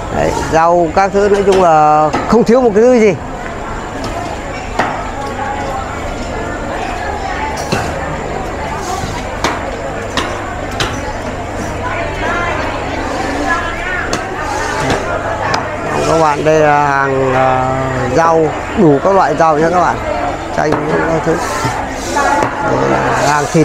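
Voices of a market crowd chatter all around.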